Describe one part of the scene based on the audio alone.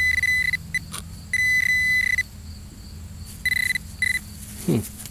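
A metal detector beeps in short, high bursts.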